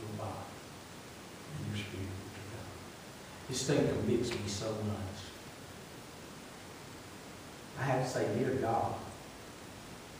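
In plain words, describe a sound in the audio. A man preaches with animation into a microphone, heard through loudspeakers in an echoing hall, with short pauses between phrases.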